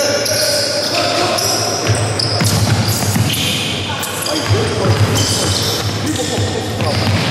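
A basketball bounces repeatedly on a wooden floor.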